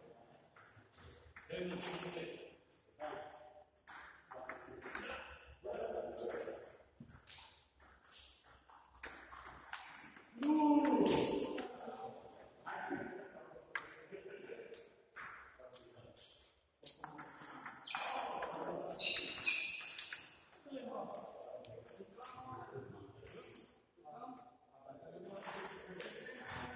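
A man talks in an echoing hall.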